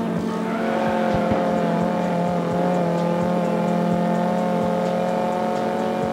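Tyres screech while drifting.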